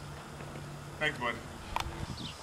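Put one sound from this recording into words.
A dog barks sharply a few times.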